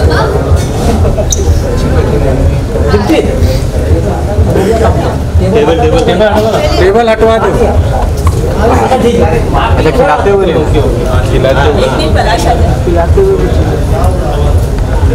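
A group of men and women chatter nearby.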